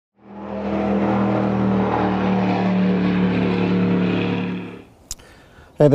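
A motorboat roars across the water.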